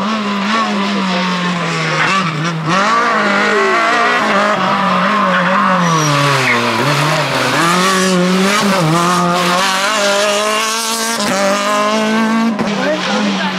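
A rally car engine roars and revs hard, its pitch rising and dropping with gear changes as it passes close by.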